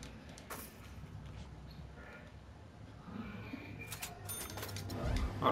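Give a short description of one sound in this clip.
Short electronic menu clicks and chimes sound.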